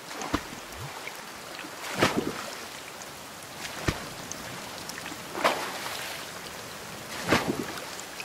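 An oar splashes and swishes through water in regular strokes.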